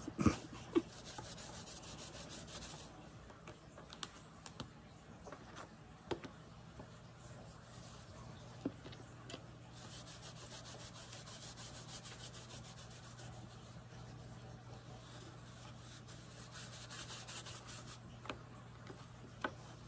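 A cotton pad rubs and scrubs softly against a metal plate.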